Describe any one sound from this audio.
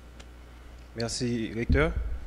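A young man speaks into a microphone over a loudspeaker.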